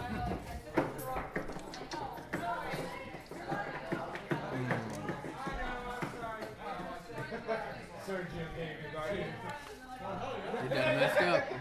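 Young men talk casually close by.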